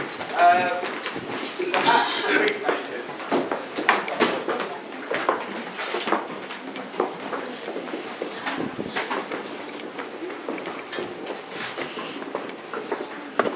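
A crowd of people chatters all around indoors.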